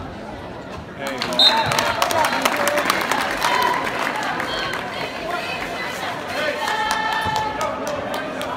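A group of young women chant and cheer loudly.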